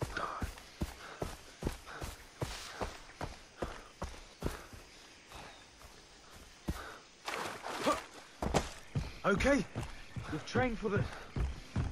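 Footsteps thud steadily at a walking pace.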